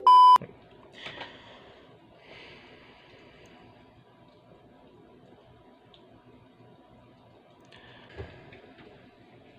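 A young man speaks softly close to a microphone.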